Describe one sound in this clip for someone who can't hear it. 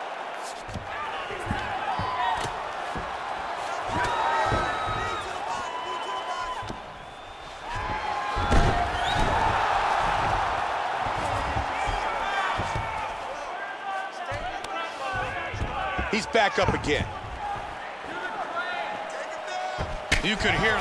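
A large arena crowd roars and cheers.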